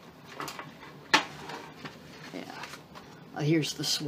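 A sheet of stiff paper rustles as hands handle it.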